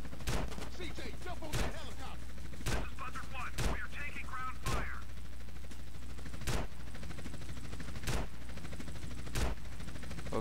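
Shotgun blasts ring out at intervals.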